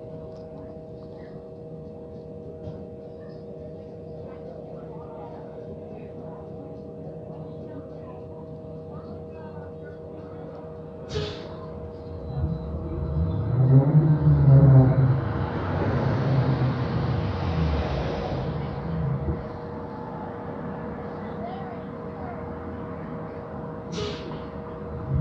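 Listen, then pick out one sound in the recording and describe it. A bus engine hums steadily from inside the bus.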